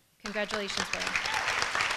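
A woman speaks briefly into a microphone over a loudspeaker.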